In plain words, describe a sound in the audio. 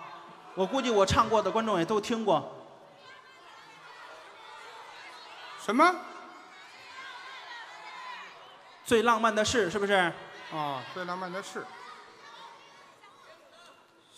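A large audience murmurs and laughs.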